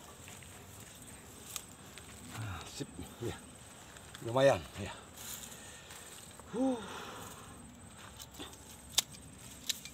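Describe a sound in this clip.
Clods of soil crumble and rustle under a man's hands.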